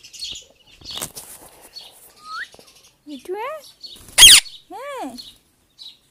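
A parrot flaps its wings.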